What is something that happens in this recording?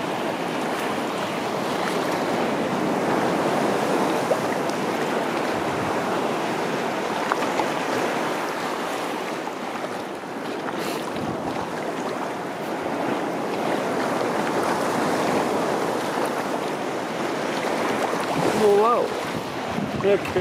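Water laps and splashes against a kayak's hull.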